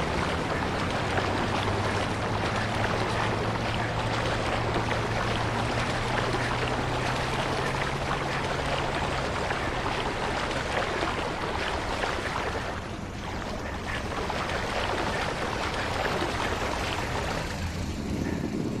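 Water splashes as a swimmer strokes through it.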